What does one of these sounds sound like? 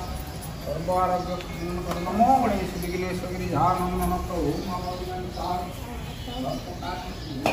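A man's voice sounds close by.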